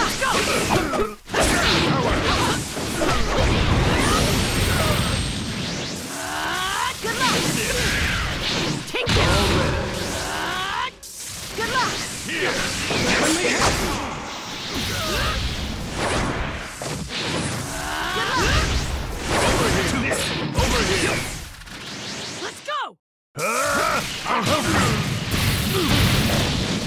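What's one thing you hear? Punches and kicks land with sharp hits in a game fight.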